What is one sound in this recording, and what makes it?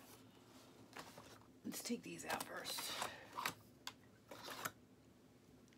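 Hands lift a cardboard insert out of a box, rustling and scraping.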